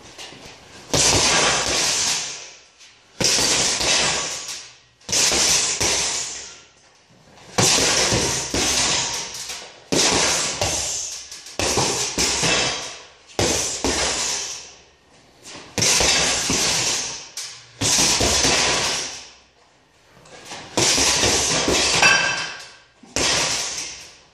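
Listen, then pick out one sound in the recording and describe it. Fists thump a heavy punching bag in quick bursts.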